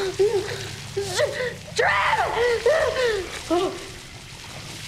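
A woman cries out in fear, her voice rising and breaking.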